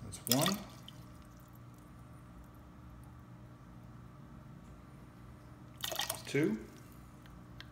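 Liquid glugs briefly from a bottle into a spoon.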